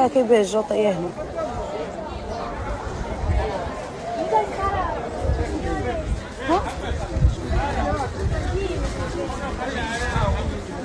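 A crowd of men and women chatter around in the open air.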